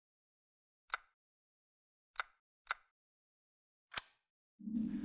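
Short menu clicks sound a few times.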